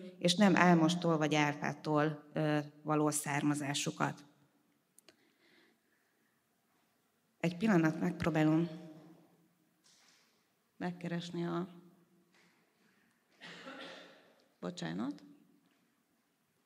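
A middle-aged woman speaks calmly into a microphone, with pauses.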